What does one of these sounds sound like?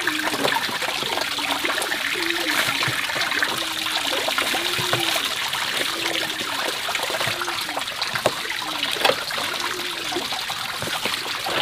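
Freshwater mussel shells clack against each other as they are handled.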